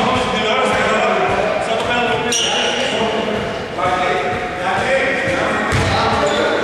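Men call out to each other across an echoing hall.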